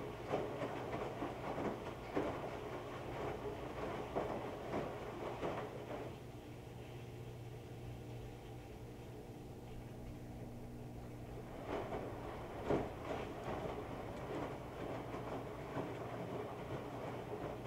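Wet clothes thump and tumble inside a washing machine drum.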